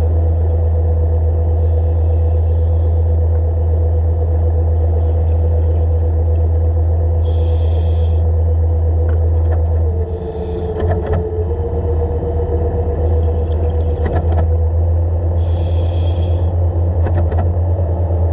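An underwater scooter's motor hums steadily and loudly.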